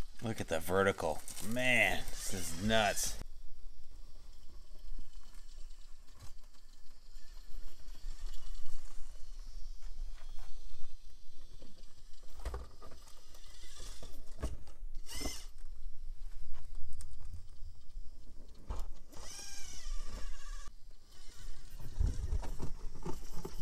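A small electric motor whirs steadily as a toy truck crawls over rocks.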